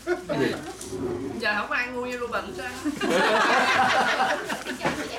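Several adults chat and laugh together.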